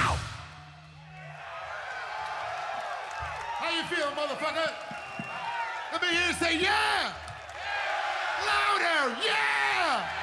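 A large crowd cheers and whistles at an outdoor concert.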